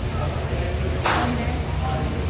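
Billiard balls clack sharply against each other.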